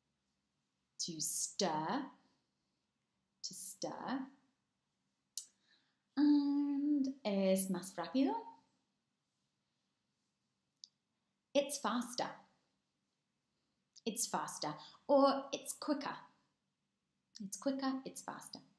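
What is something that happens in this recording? A woman speaks with animation, close to a microphone, with pauses between phrases.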